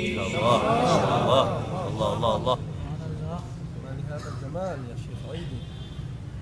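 A man chants melodiously into a microphone.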